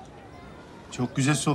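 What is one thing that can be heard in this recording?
Another man speaks close by in a low voice.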